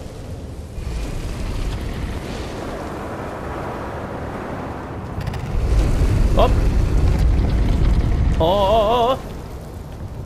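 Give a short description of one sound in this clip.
Magical flames roar with a deep, steady rumble.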